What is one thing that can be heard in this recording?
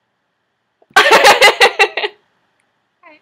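Young girls laugh loudly close to a microphone.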